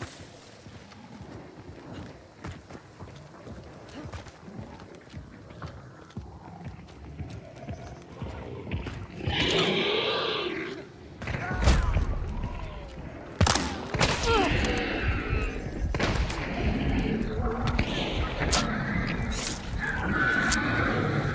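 Footsteps crunch on hard ground.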